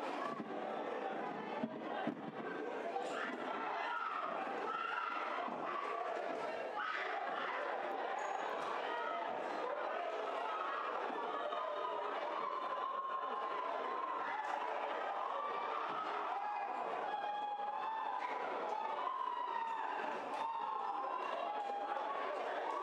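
A crowd of men and women shout and yell in a large echoing hall.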